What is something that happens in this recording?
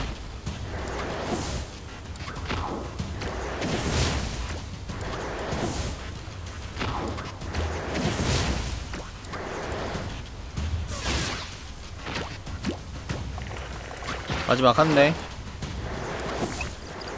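Blades slash and clash in quick bursts.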